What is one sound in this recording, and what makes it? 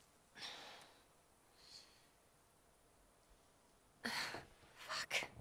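A young woman gasps and groans in pain close by.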